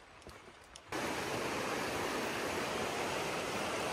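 A stream rushes steadily nearby.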